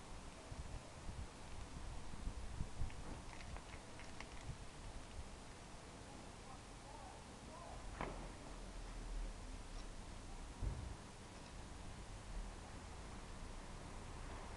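Wind gusts outdoors, buffeting against the microphone.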